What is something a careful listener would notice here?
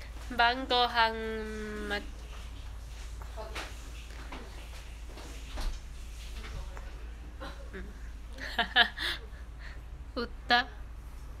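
A young woman speaks casually close by, with pauses.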